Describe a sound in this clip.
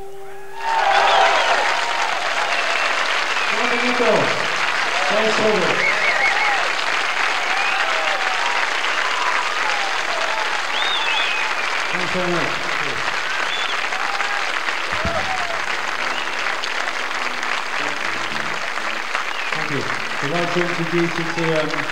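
A live rock band plays electric guitars and drums in a large hall.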